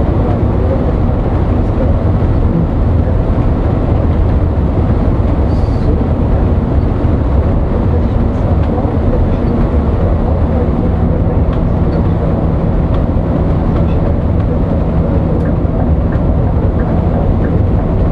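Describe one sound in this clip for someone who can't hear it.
A large vehicle's engine drones steadily from inside the cab.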